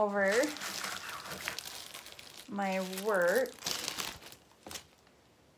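Paper rustles on a table.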